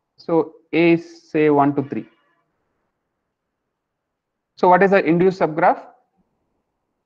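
A young man speaks calmly and slowly through a headset microphone, with long pauses.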